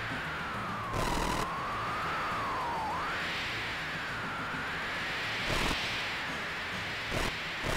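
Electric sparks crackle and fizz from a machine.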